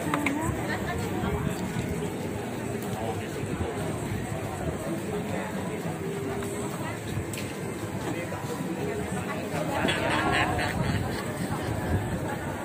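Many people chatter in the background of a large room.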